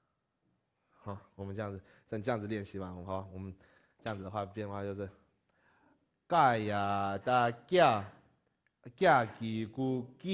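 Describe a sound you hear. A man speaks clearly and steadily, close by, as if teaching.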